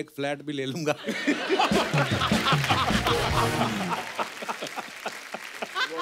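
A studio audience laughs and cheers.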